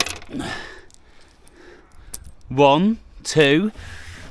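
Coins clink together in a hand.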